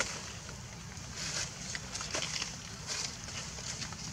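Dry leaves rustle and crackle as a small monkey handles them.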